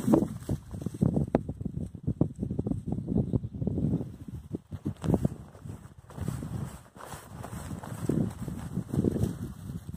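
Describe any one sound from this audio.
Footsteps thud and swish through grass.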